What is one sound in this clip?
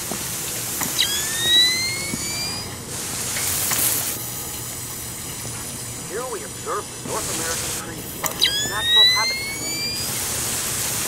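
A night vision device switches on with a rising electronic whine.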